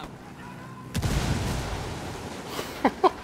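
A loud explosion booms.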